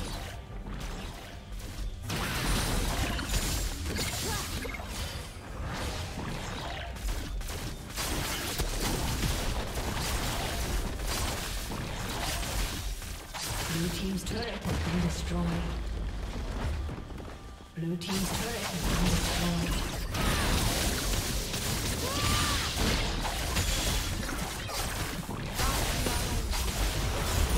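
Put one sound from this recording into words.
Video game spell effects crackle, whoosh and boom.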